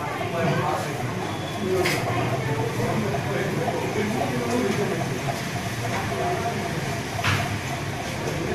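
Several men talk close by.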